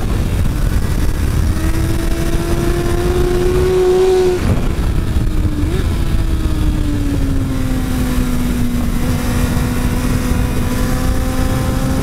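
A motorcycle engine roars close up, rising and falling as it shifts gears.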